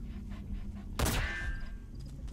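A silenced rifle fires a single muffled shot.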